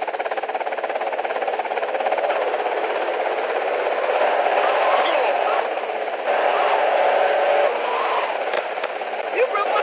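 A car engine revs hard as the car speeds along.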